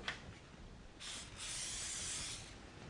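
A cooking spray can hisses in short bursts.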